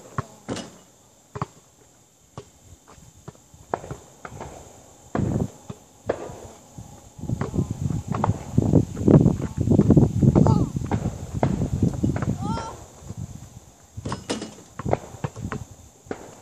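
A basketball bounces on the ground with sharp thuds.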